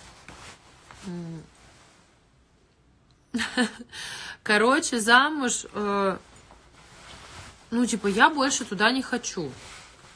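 A young woman speaks casually and close by.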